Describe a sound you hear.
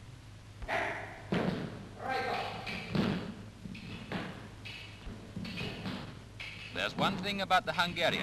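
Fencing blades clash and scrape together.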